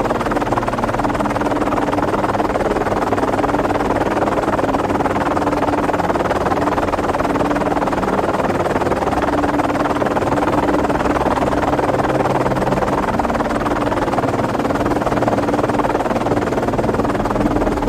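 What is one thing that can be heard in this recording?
Water churns and foams around a sinking ship.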